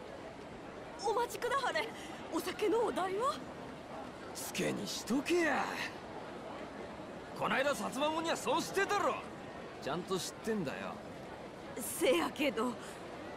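Game characters speak in raised voices.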